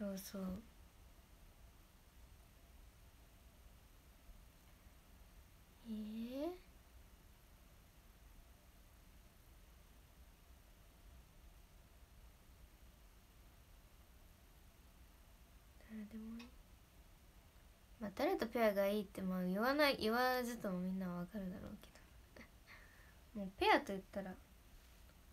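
A young woman speaks softly and close to a microphone, in short bursts with long pauses.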